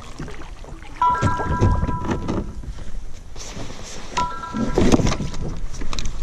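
A paddle splashes in water close by.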